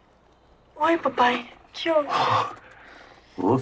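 A young woman speaks softly and breathily, close by.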